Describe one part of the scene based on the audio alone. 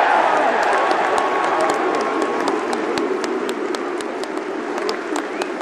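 Football fans in a stadium clap in rhythm.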